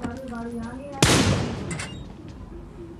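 A rifle fires a single loud shot that rings out and fades.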